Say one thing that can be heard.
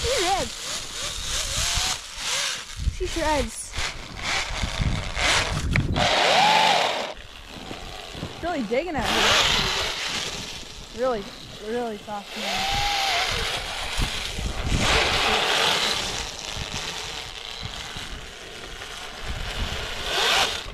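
A small electric motor whines and revs up and down.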